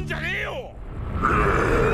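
A huge beast roars loudly.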